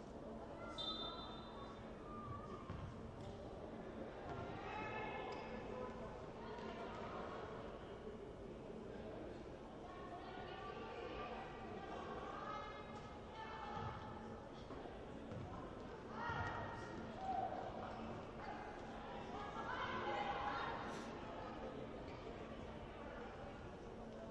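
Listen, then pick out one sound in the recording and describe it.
A crowd of spectators chatters and calls out in a large echoing hall.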